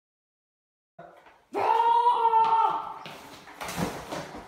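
Young girls shout and scream playfully, close by.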